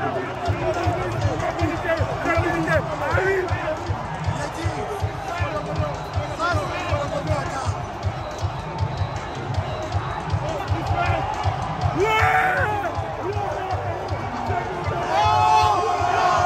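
A large stadium crowd sings and chants loudly throughout.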